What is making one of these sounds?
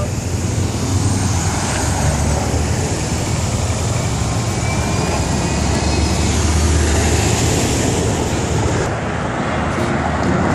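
Traffic hums and rumbles steadily along a busy street outdoors.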